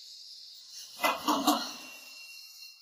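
Knuckles knock on a door.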